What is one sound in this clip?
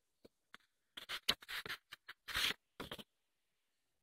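Magazine pages rustle and flap as they are turned.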